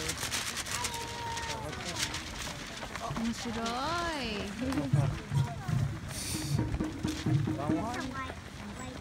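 Many runners' shoes slap on the road.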